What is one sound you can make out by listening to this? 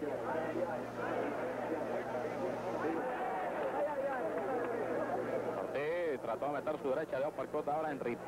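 A large crowd cheers and murmurs in a big hall.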